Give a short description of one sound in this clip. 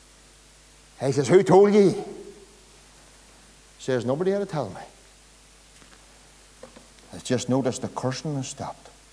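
A middle-aged man preaches with animation in a room with a slight echo, pausing between phrases.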